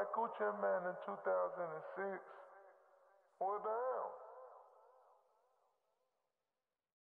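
A man speaks loudly in short bursts, with a trailing echo.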